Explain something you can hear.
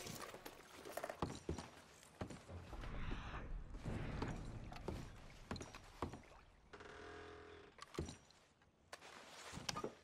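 Boots thud on creaking wooden floorboards.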